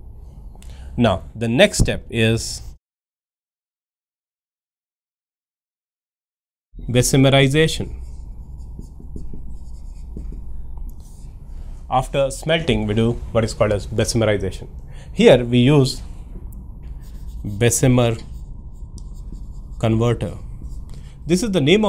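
A man speaks calmly and clearly into a microphone, explaining.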